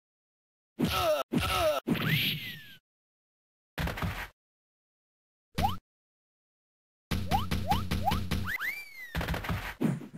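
Whistling comic sound effects swoop up and down.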